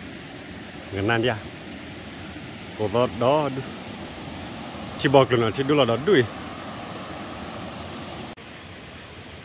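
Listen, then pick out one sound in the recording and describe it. A stream flows and gurgles nearby.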